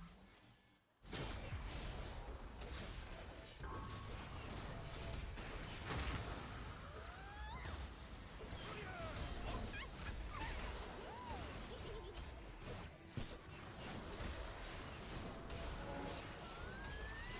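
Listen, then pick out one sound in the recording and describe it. Fantasy battle sound effects clash, zap and explode.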